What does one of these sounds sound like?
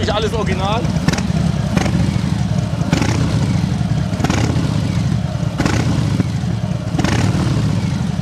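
A motorcycle engine revs sharply in short bursts.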